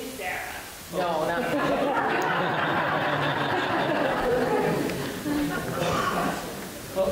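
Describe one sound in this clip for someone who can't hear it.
A crowd of people murmurs and talks at once.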